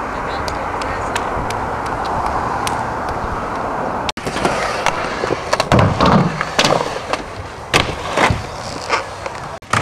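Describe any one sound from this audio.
A skateboard clatters against the ground.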